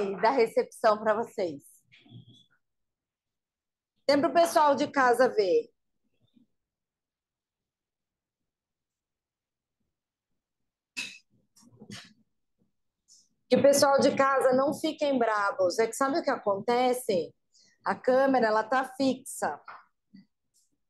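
A woman speaks with animation into a microphone, in short bursts with pauses.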